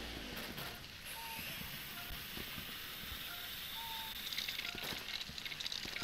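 A vacuum cleaner whooshes loudly, sucking in air.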